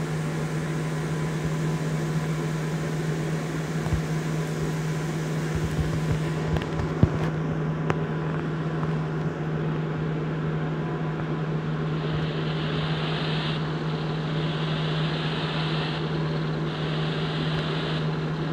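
A simulated heavy truck engine drones.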